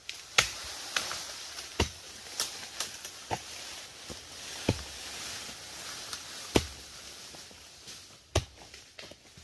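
A machete chops sharply through brush and bamboo.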